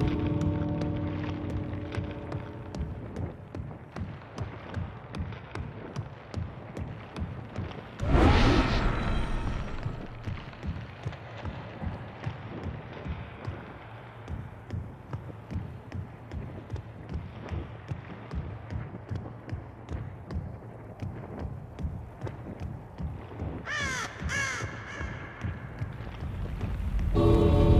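Heavy footsteps thud steadily on a hard floor.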